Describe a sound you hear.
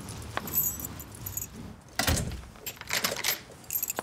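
A door latch clicks and rattles as a door is opened.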